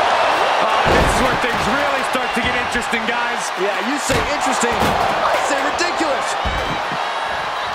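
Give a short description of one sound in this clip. A ladder crashes onto a ring with loud impacts.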